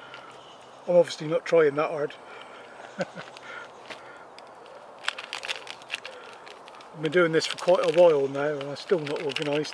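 A small campfire crackles softly.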